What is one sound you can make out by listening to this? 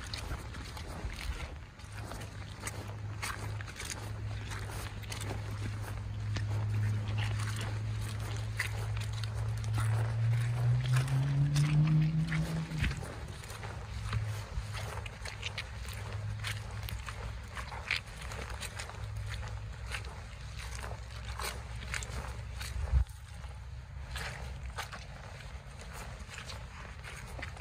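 Boots crunch and scuff on dirt and dry leaves.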